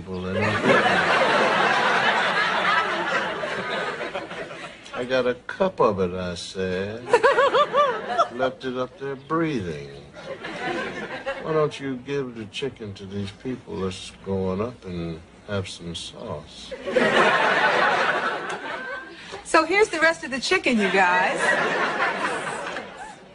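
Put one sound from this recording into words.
A woman speaks warmly close by.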